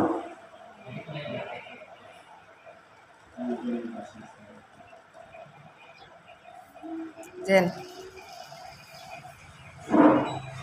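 Men talk nearby in a room.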